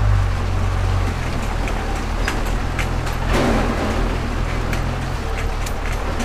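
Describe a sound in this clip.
Tyres splash through shallow water.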